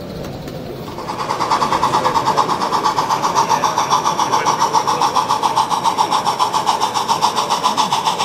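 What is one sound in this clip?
A model steam locomotive chuffs in a fast, steady rhythm.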